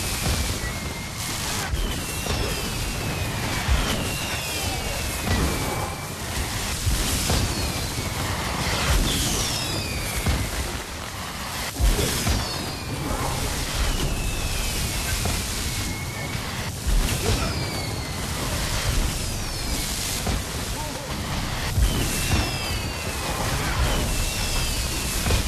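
Magic spells crackle, whoosh and burst without pause in a fast battle.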